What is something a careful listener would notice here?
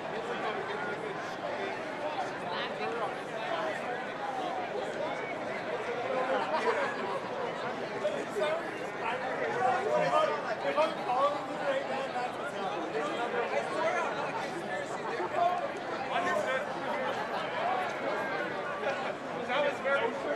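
Men on a sports field shout and call to each other.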